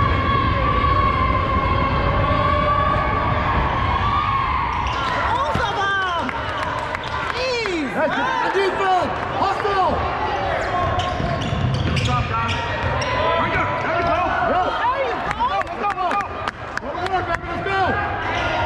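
Spectators murmur in the stands.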